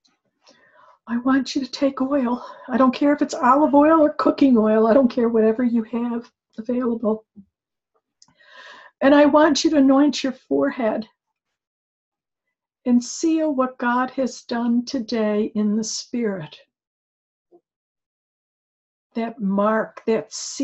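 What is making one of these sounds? An older woman speaks calmly and expressively, close to a microphone, over an online call.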